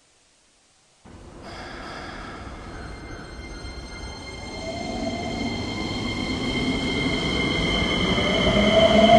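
A train rumbles along, its motor whining higher as it speeds up.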